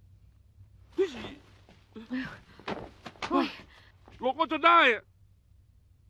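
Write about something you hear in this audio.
A man speaks in a tense voice.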